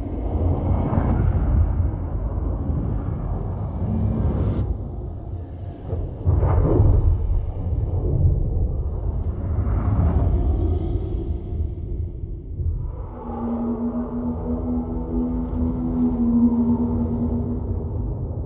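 Flames roar and crackle with a deep rumble.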